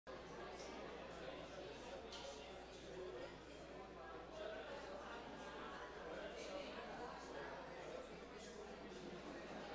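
A guitar is played through an amplifier.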